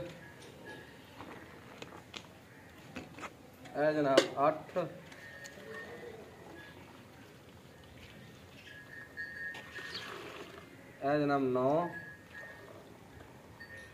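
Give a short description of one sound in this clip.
Milk splashes as it pours into a metal bucket.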